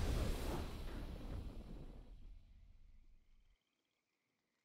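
A triumphant victory fanfare from a video game swells and then fades away.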